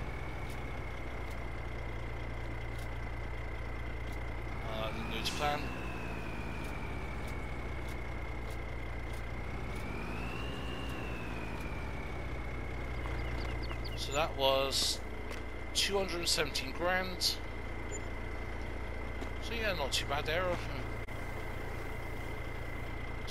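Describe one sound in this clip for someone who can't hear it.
A tractor engine idles with a steady hum, briefly revving up twice.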